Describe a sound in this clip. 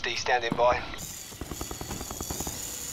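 A small remote-control car's electric motor whirs.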